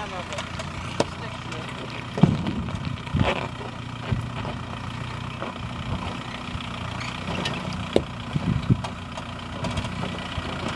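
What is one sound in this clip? Tyres crunch and knock over loose rocks.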